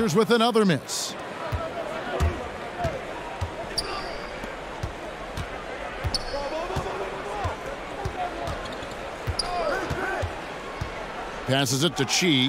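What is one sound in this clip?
A basketball bounces repeatedly on a hardwood floor.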